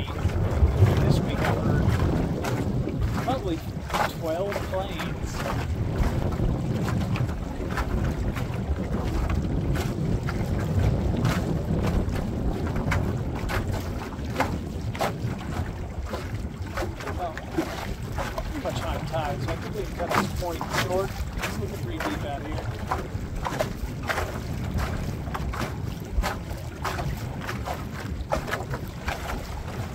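Small waves slap against a boat's hull.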